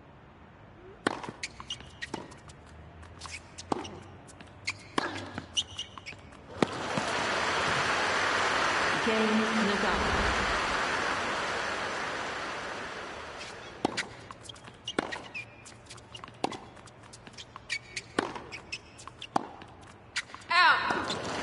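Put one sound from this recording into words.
A tennis ball is struck back and forth with sharp pops.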